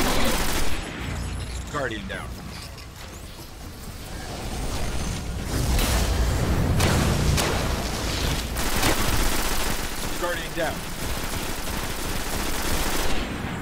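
A rifle fires in sharp, heavy shots.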